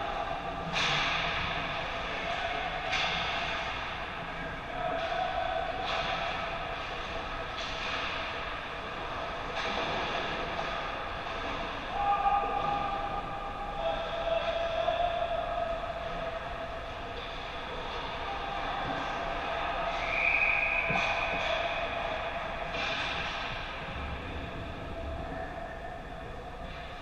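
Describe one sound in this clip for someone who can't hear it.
Skates scrape and hiss on ice in a large echoing hall.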